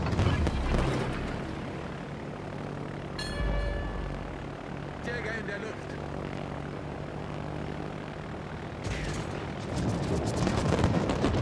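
Propeller aircraft engines drone steadily overhead.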